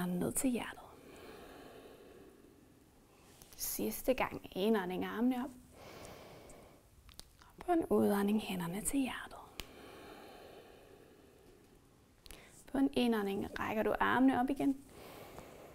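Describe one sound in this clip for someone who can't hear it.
A woman speaks calmly and softly through a close microphone, in short phrases with pauses.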